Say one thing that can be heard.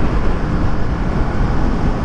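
A large truck rumbles by close alongside.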